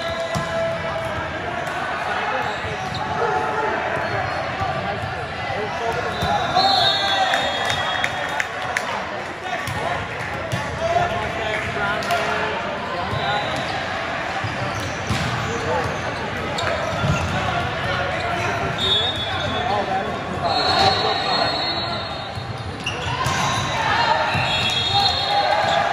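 A crowd of spectators chatters throughout a large echoing hall.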